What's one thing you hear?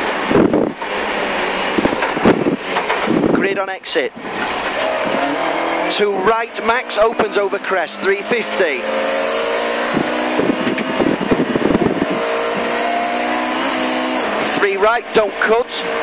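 A rally car engine roars loudly, revving up and down as it changes gear.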